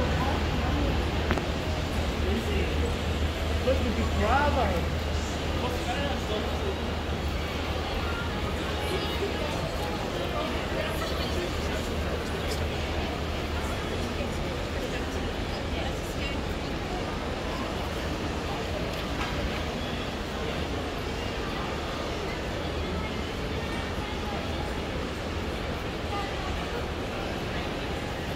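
Many people chatter in a low murmur around.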